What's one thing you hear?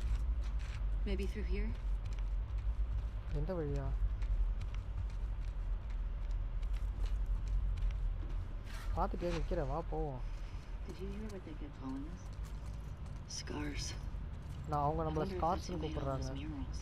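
A young woman speaks calmly and quietly.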